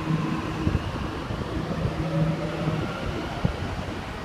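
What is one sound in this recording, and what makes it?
A train begins to roll slowly away.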